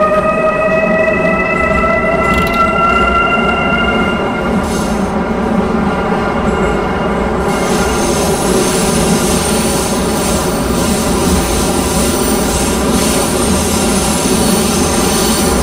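A train rumbles steadily along the tracks through a tunnel.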